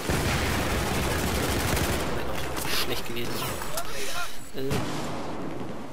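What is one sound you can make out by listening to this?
An explosion booms and debris scatters.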